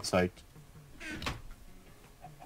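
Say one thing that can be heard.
A wooden chest lid thumps shut.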